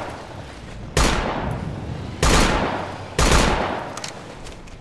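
A rifle fires three loud shots that ring out and echo.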